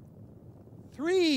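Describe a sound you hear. A young man speaks cheerfully, close by.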